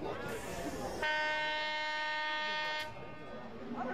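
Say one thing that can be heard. A referee's whistle blows with one long, steady blast.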